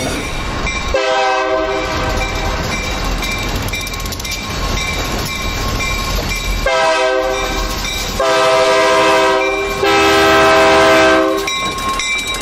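A locomotive horn blows several loud, long blasts as a train approaches.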